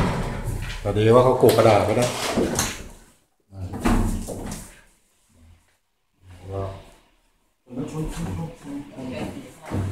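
A large wooden board bumps and scrapes against a door frame.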